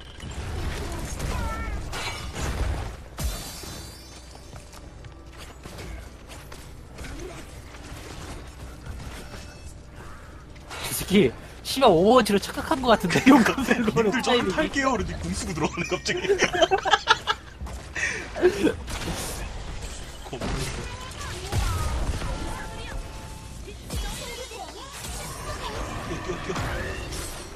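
Magic blasts burst and crackle in a fast fight.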